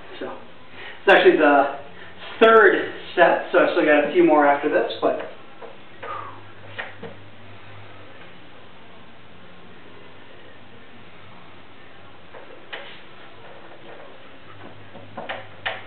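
Gymnastic rings creak and clink as a man pulls on them.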